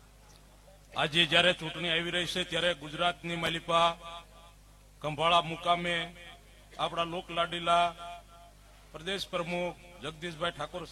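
A man gives a speech loudly through a microphone and loudspeakers.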